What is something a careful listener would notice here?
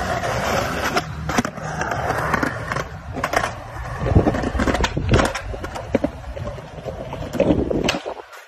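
A skateboard clacks and slaps on landing.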